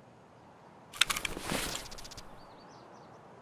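Clothing and gear rustle as a person crouches.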